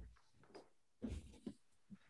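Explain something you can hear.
A middle-aged woman speaks briefly and calmly, close to a microphone.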